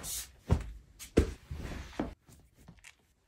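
Pillows thump softly onto a bed.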